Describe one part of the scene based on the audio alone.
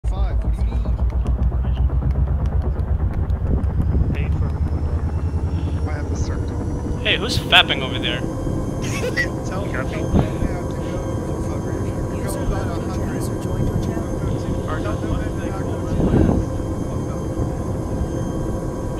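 Aircraft engines drone steadily with a deep, throbbing hum.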